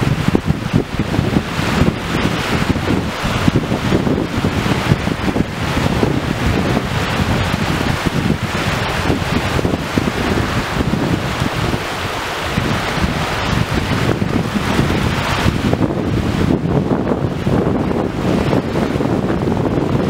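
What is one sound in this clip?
Wind gusts outdoors, buffeting the microphone.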